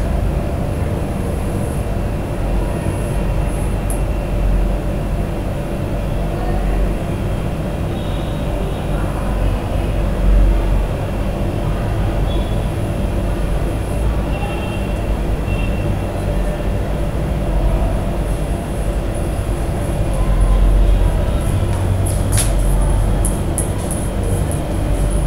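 Chalk scrapes and taps against a blackboard.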